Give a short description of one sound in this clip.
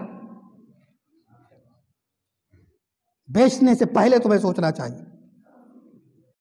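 A man speaks into a microphone over a loudspeaker in an echoing hall, chanting with a rising and falling voice.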